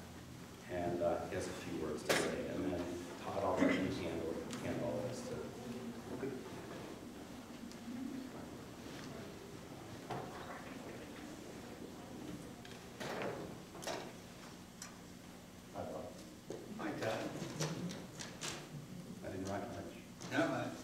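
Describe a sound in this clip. A man speaks calmly into a microphone in a large room with some echo.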